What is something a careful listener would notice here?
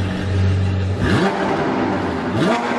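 A sports car engine revs sharply several times.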